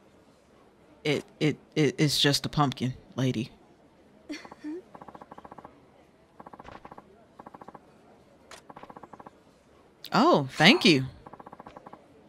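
A young woman speaks with animation and giggles, heard up close.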